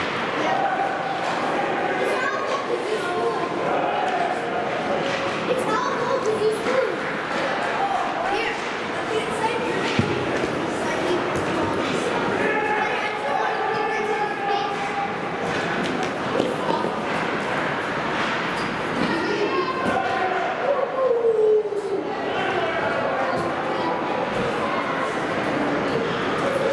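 Voices of players and spectators call out in a large echoing rink.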